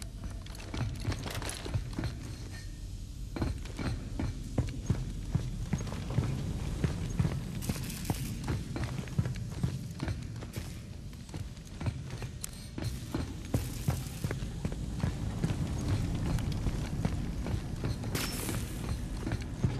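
Heavy boots thud on a metal floor at a running pace.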